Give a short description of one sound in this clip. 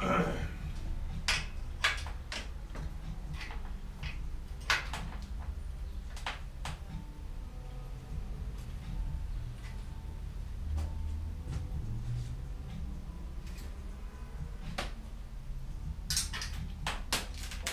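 Metal tools click and clink against a bicycle.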